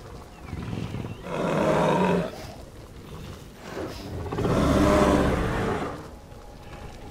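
A large creature lets out a loud, drawn-out bellow.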